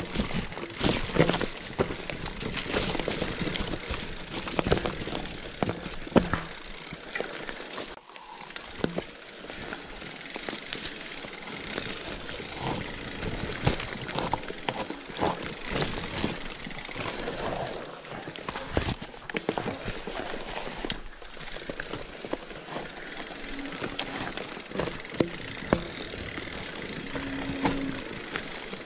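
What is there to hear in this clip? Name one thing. A bicycle frame clatters and knocks over rocks and roots.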